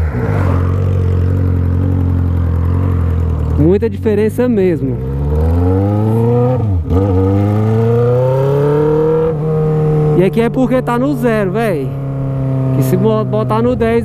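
A motorcycle engine roars, revving up and dropping at each gear change.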